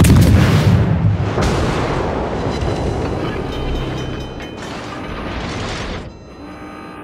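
Heavy naval guns boom and explosions rumble loudly.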